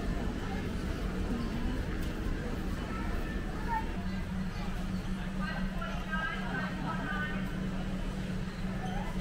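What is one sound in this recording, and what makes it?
Shoppers chatter in a large echoing hall.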